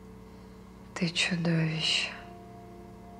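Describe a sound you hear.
A young woman answers quietly close by.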